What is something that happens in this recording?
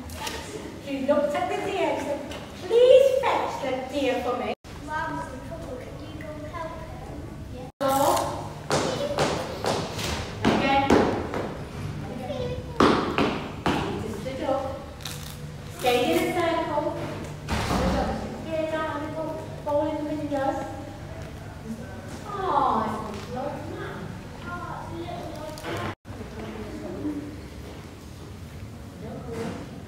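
Children speak aloud in a large echoing hall.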